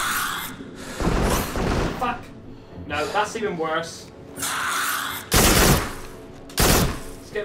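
A gun fires in short, loud bursts.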